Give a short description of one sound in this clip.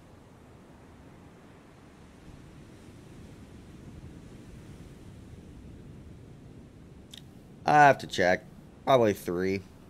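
Sea waves wash softly around a moving ship.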